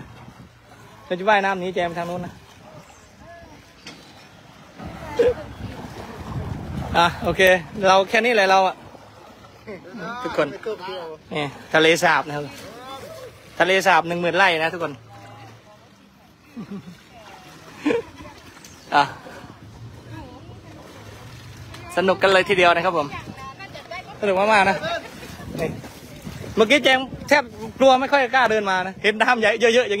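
Water sloshes and splashes as elephants wade through it.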